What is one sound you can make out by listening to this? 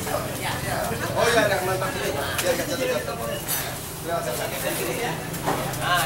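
A crowd of men and women chatter around a room.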